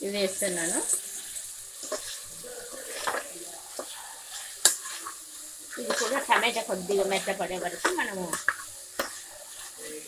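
A spoon scrapes and knocks against a metal pot.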